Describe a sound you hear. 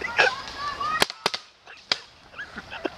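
Paintball markers fire with sharp pops.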